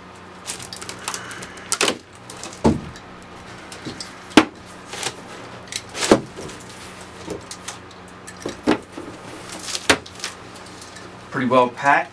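Cardboard flaps thump and scrape as they are pulled open.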